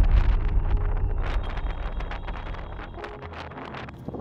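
Wind blows in low gusts outdoors.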